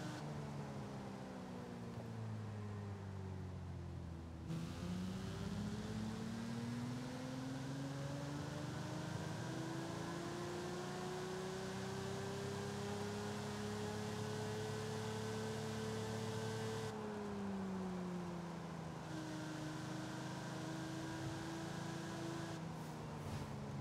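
A sports car engine roars, slowing down, then revving up steadily and easing off again.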